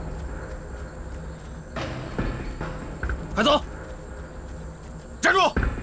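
Footsteps shuffle on hard ground.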